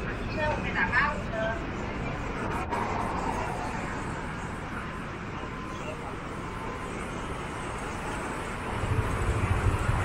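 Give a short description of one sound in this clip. Street traffic hums steadily in the distance.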